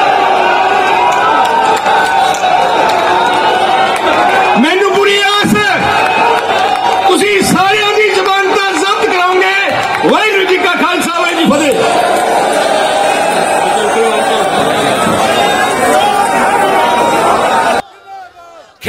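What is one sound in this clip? A crowd cheers and chants loudly in a large space.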